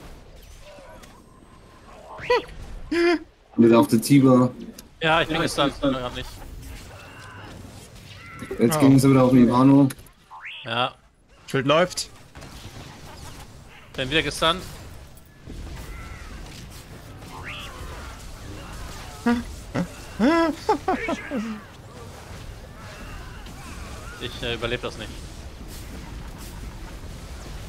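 Energy blasts zap and crackle in a fight.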